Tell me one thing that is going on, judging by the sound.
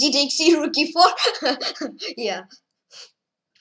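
A young boy talks quickly and animatedly into a close microphone.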